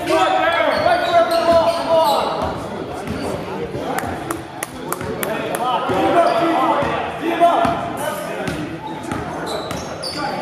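A basketball bounces on a hard wooden floor, echoing in a large hall.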